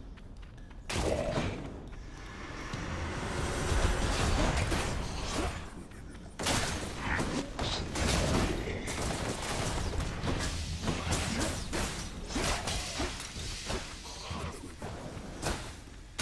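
Video game combat effects whoosh and clash.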